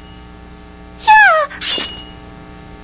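Metal blades scrape and ring as they cross.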